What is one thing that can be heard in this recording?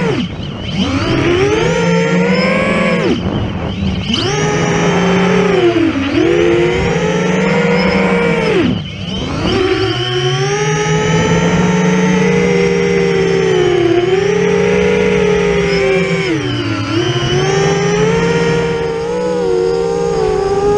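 A small drone's motors whine loudly and close, rising and falling in pitch as it swoops.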